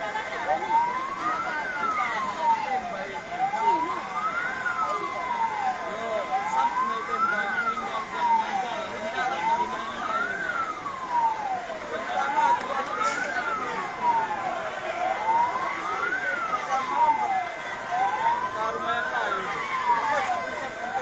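A siren wails, rising and falling at a steady pace.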